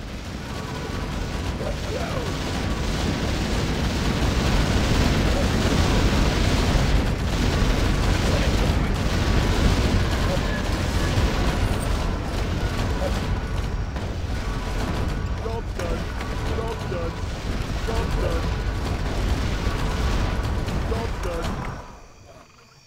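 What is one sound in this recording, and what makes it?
Game explosions and magic blasts boom and crackle loudly.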